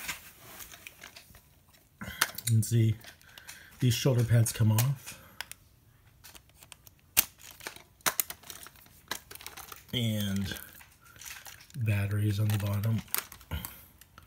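Plastic toy parts click and clatter.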